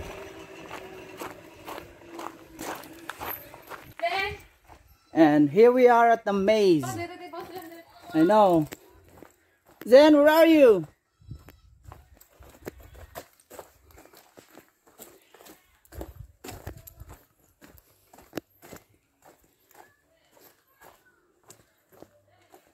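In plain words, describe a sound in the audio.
Footsteps crunch on wood chips.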